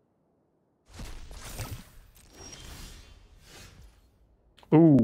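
Digital cards swish and thud as they are played.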